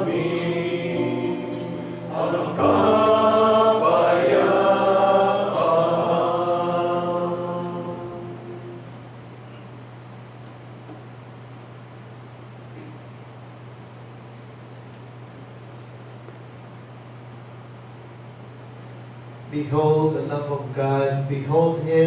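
A middle-aged man chants through a microphone.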